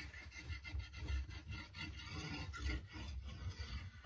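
A hammer taps lightly on wood.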